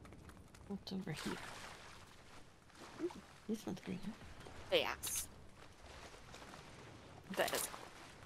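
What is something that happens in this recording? Water splashes as a game character wades through it.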